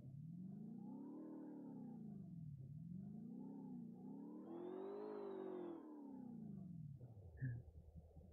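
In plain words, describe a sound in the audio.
A vehicle engine hums, rising and falling in pitch as it drives.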